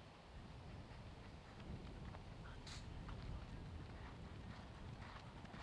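A horse's hooves thud on grass as it gallops.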